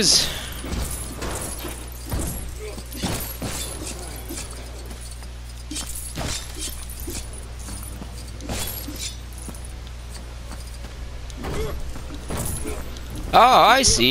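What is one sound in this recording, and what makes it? Coins jingle as they are collected.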